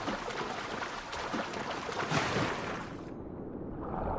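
Water splashes as a swimmer dives below the surface.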